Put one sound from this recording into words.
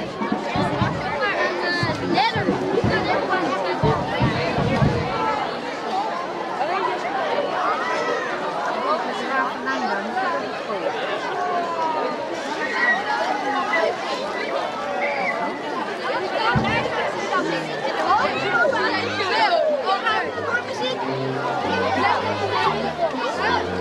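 A crowd of adults and children chatters and calls out outdoors.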